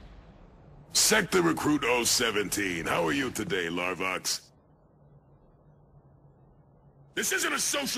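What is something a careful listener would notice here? A man speaks firmly in a deep voice.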